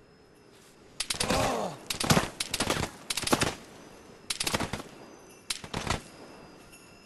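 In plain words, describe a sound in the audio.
Rifle gunshots fire in quick, sharp bursts.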